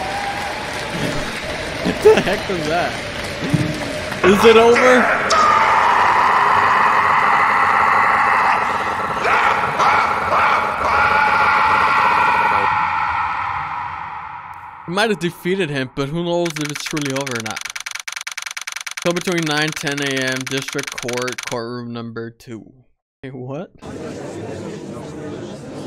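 A young man talks and laughs with animation into a close microphone.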